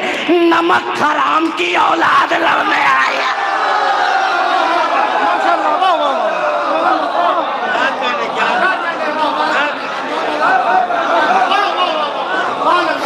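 A crowd of men cheers and shouts in praise.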